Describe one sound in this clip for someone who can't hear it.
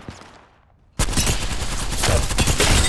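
Gunfire from a rifle rattles rapidly and loudly.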